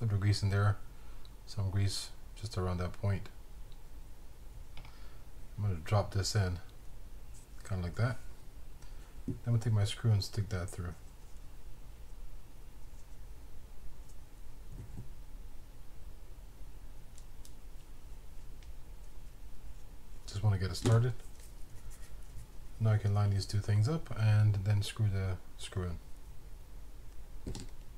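Small plastic and metal parts click softly as they are handled.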